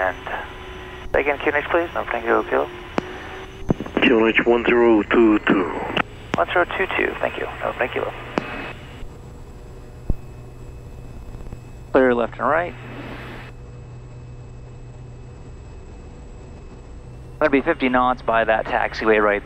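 A propeller engine drones steadily nearby.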